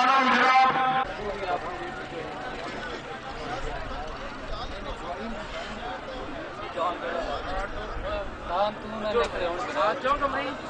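Men talk and chatter nearby in an outdoor crowd.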